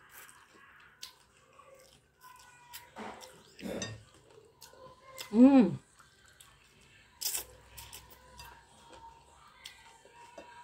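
A fork scrapes and clinks against a glass bowl.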